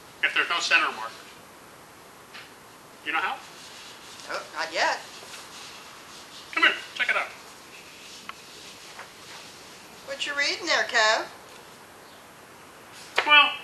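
A middle-aged man speaks calmly and clearly into a microphone, with pauses.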